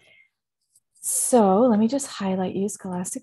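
A woman speaks calmly into a headset microphone over an online call.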